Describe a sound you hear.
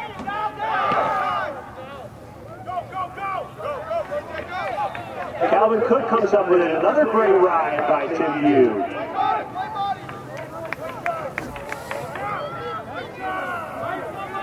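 Young male players call out to each other across an open field.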